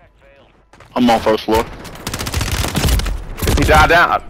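Gunshots ring out in rapid bursts close by.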